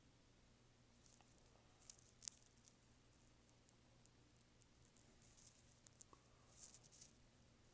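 A pencil scratches and sketches softly on paper.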